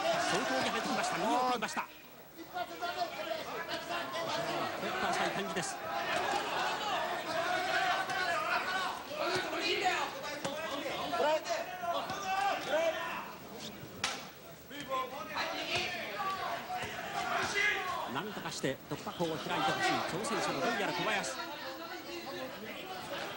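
A large crowd murmurs and cheers in a big hall.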